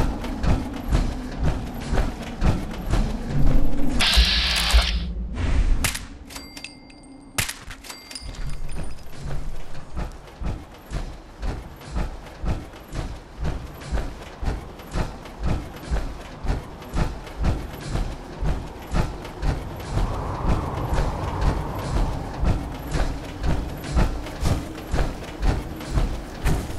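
Heavy armoured footsteps thud steadily on pavement.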